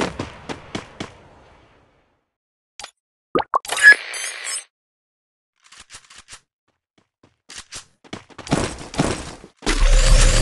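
Menu buttons click and chime.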